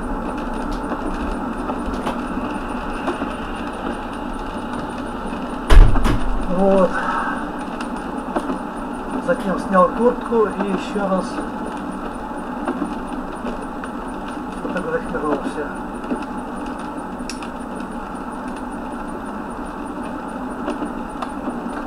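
Windscreen wipers sweep across the glass now and then.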